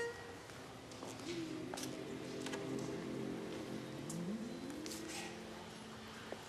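A male choir begins to sing softly in harmony.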